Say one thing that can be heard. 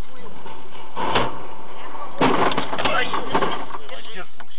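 A heavy truck crashes into a car with a loud crunch.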